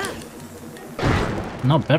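A fiery explosion bursts with a loud crackling blast.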